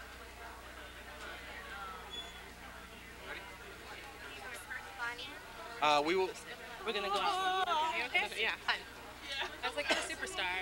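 A crowd of men and women chatters in a large room.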